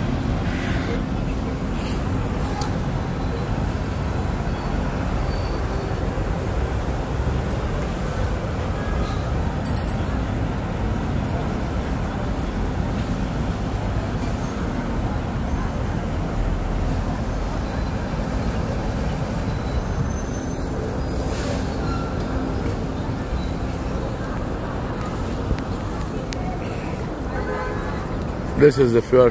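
City traffic hums in the distance below.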